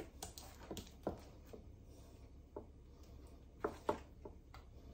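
A spoon scrapes and taps against a metal bowl.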